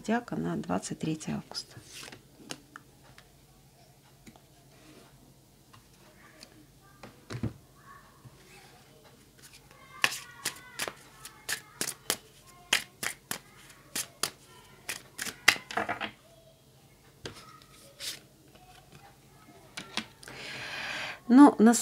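A card is laid down softly on a cloth.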